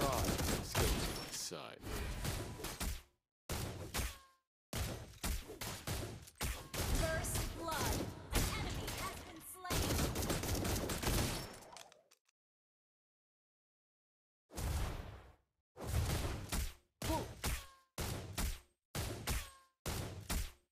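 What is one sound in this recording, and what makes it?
Game combat effects clash and burst in quick succession.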